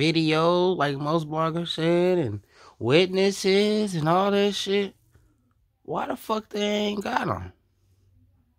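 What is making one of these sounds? A young man raps loudly into a microphone.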